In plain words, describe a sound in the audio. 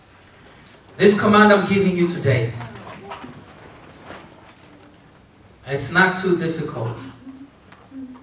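A young man reads out aloud through a microphone and loudspeaker, in short loud bursts with a slight echo.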